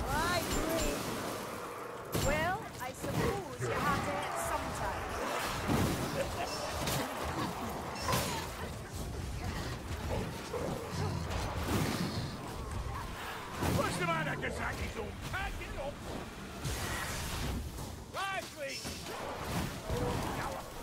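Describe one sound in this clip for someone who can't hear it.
Fire spells whoosh and roar in bursts.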